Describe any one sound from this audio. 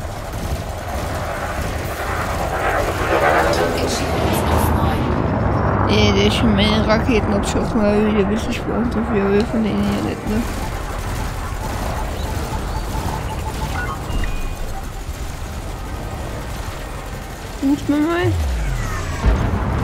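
A spaceship's engines hum with a low, steady rumble.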